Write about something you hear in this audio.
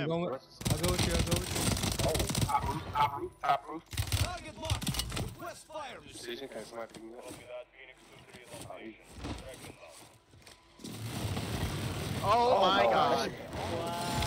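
Rifle shots ring out in quick bursts.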